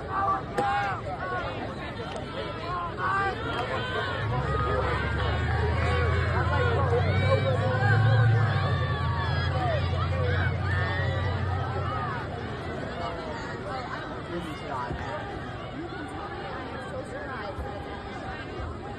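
A crowd of spectators cheers and chatters outdoors.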